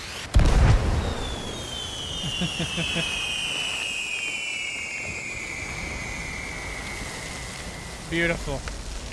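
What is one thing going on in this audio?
A firework whistles, its pitch slowly falling.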